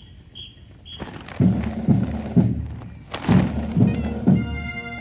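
Bagpipes play.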